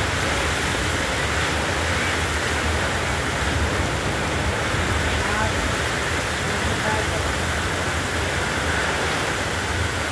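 Motorcycle engines hum as motorbikes ride through the rain.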